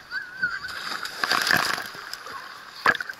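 Water splashes as children slide into a pool.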